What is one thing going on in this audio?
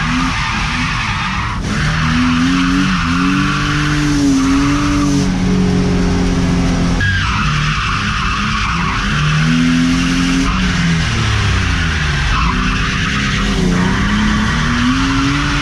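Tyres screech and squeal on asphalt.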